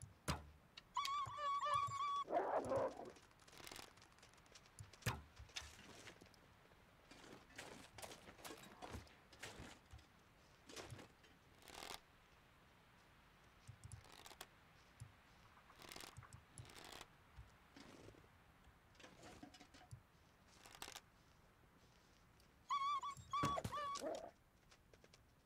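A wooden bow creaks as it is drawn.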